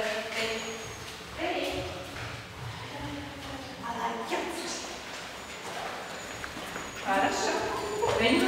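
Shoes tap softly on a hard floor.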